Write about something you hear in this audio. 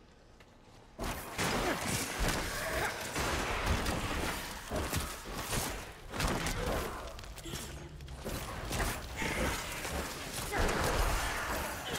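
Weapons clash and spells crash loudly in a fast fight.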